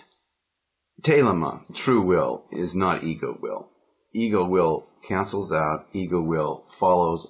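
A middle-aged man talks with animation, close by.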